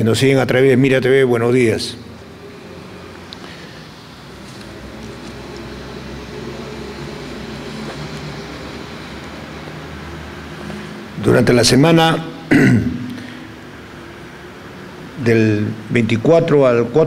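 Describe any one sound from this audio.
An older man speaks calmly into a microphone, with long pauses.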